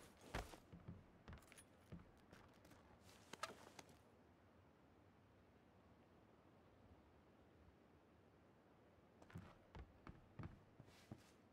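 Footsteps thump on a wooden floor.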